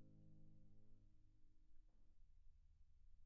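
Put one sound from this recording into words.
A piano chord rings out softly and slowly fades away.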